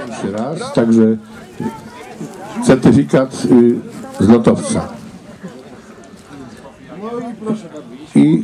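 A man speaks loudly with animation nearby.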